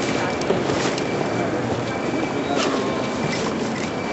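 A zipper is pulled on a bag.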